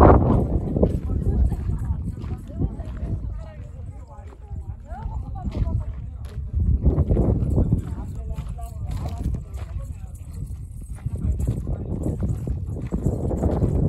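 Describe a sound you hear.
Footsteps crunch on gravelly ground.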